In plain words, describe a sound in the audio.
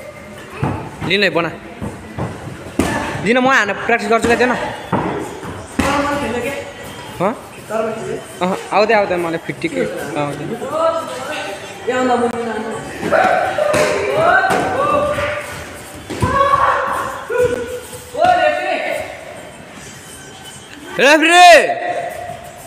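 Young fighters shout sharply during sparring.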